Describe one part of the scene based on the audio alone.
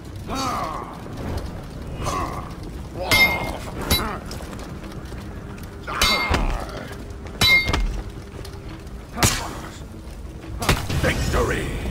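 Metal weapons clash and strike in sharp blows.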